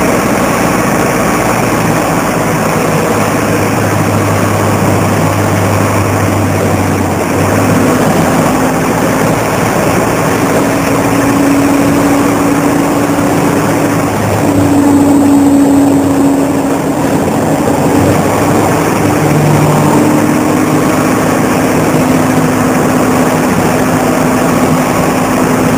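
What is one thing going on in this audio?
A bus engine idles with a steady low hum that shifts in pitch now and then.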